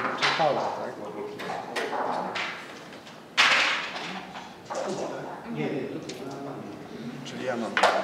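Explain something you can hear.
Game pieces click against a wooden board.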